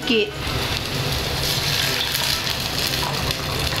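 Water pours and splashes into a pot.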